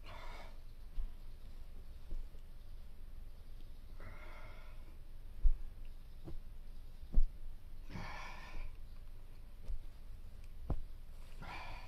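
A body thumps softly on a mattress now and then.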